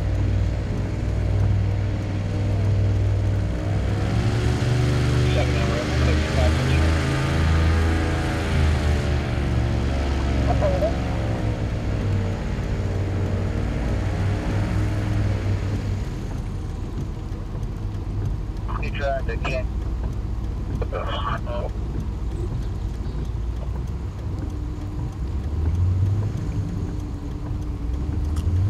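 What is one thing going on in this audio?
An airboat engine roars steadily, its pitch rising and falling.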